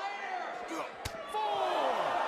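A body slams onto a ring mat with a loud thud.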